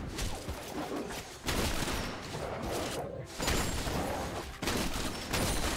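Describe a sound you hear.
Magic spells crackle and clash during a fast fight.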